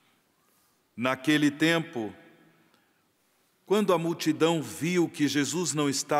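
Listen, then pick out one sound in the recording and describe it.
A middle-aged man chants through a microphone in a large echoing hall.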